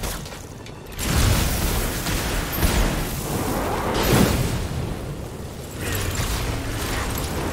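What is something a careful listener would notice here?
Explosions boom and crackle with fire.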